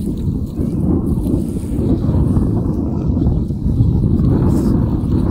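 Small waves wash onto a sandy shore, outdoors in wind.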